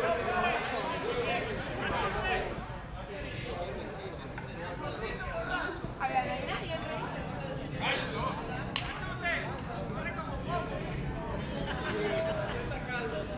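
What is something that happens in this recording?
Young men talk and call out across an open field.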